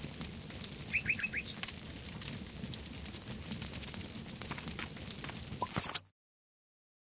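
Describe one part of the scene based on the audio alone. A fire crackles and roars softly.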